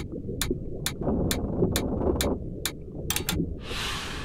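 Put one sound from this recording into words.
Short clicks tick one after another as marks are written.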